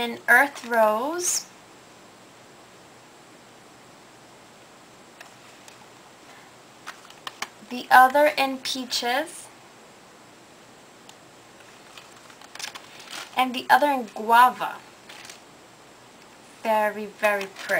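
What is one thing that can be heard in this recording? A young woman talks calmly and close by, in bursts with pauses.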